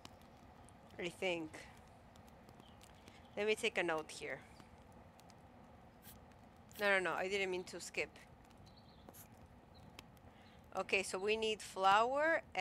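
A young woman speaks with animation, close to a microphone, in short bursts.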